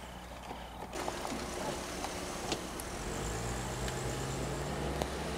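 A car engine idles and the car pulls away.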